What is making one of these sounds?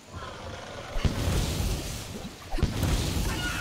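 A large creature lands with heavy, booming thuds.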